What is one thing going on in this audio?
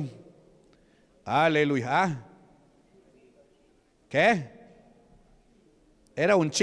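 A man preaches loudly and with fervour through a microphone in an echoing hall, in short bursts with pauses.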